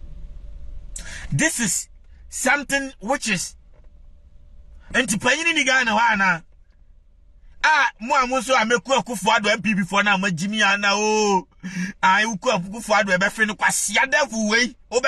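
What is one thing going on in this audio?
A man speaks loudly and with animation, heard close through a phone microphone.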